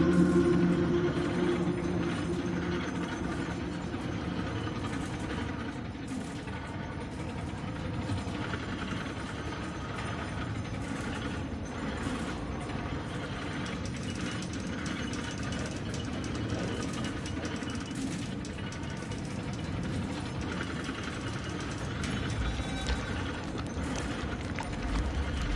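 A cart rumbles steadily along a track.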